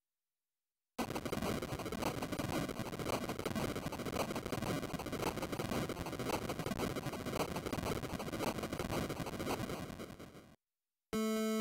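A game's castle crumbles with a long, crackling rumble.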